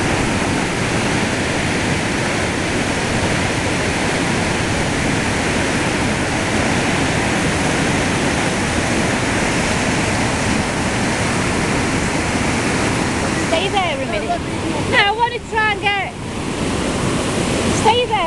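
Water roars and churns over a weir close by.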